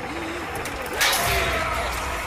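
A magical blast bursts with a roaring whoosh.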